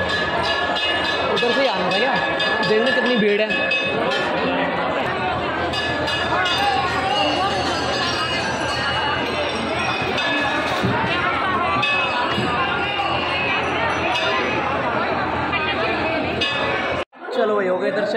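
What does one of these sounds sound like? A crowd chatters loudly in an echoing hall.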